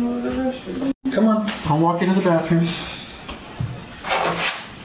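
Footsteps and scuffling shuffle across a carpeted floor.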